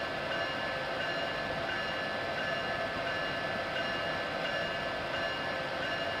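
An electric train hums steadily as it rolls along the tracks.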